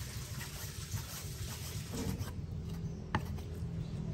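A cleaver chops raw beef on a wooden chopping block.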